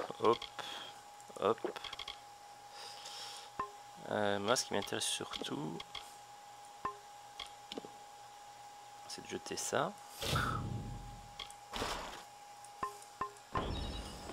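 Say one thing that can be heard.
Short soft clicks and chimes sound as menu items are selected.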